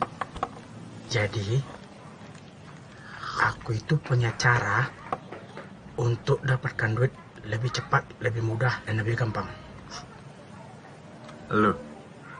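A young man speaks with animation close by.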